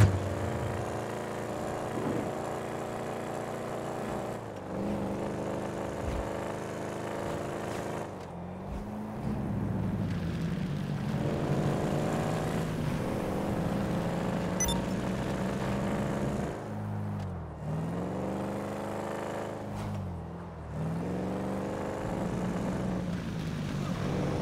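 A car engine hums steadily and rises in pitch, dropping briefly as gears shift.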